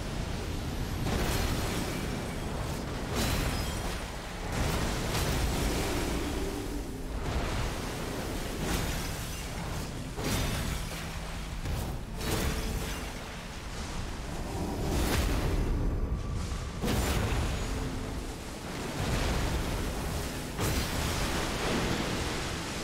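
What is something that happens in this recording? Loud magical blasts boom and crackle again and again.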